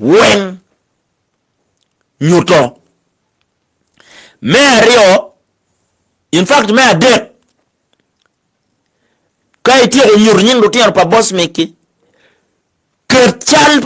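A man sings in short phrases, close by.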